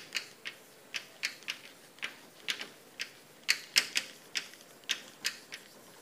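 Chalk taps and scratches on a blackboard in quick strokes.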